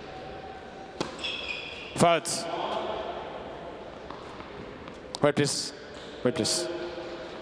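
A tennis ball is struck sharply by a racket several times.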